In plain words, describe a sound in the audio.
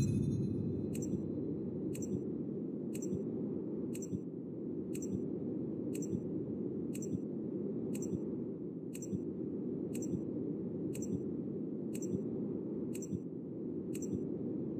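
A short electronic tick sounds once every second.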